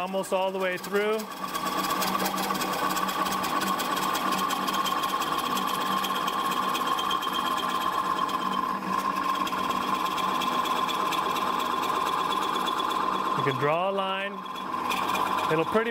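A chisel scrapes and cuts steadily into wood spinning on a whirring lathe.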